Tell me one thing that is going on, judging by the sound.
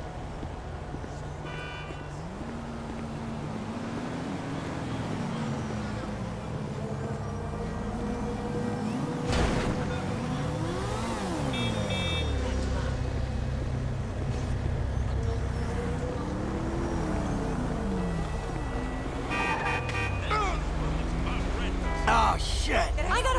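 Car engines hum and rise and fall in pitch as traffic drives past.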